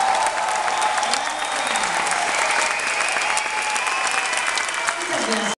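A woman sings into a microphone, heard through loudspeakers in a large hall.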